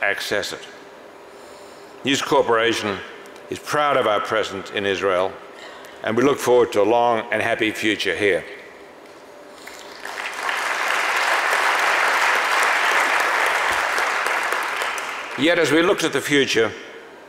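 An elderly man speaks slowly into a microphone in a large hall.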